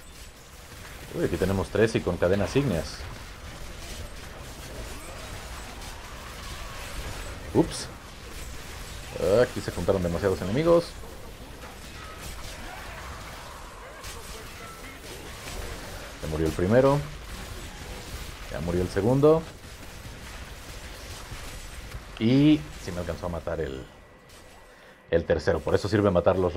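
Spells crackle and blows clash in a fast game battle.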